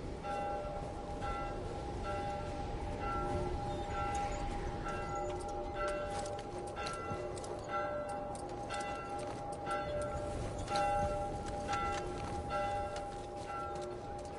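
Boots crunch through snow at a walking pace.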